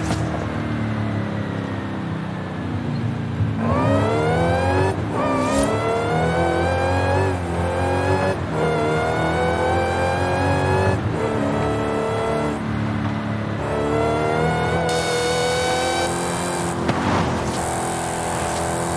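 A car engine revs hard, rising in pitch through each gear and dropping at each gear change.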